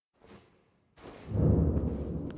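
Heavy footsteps echo in a stone hall.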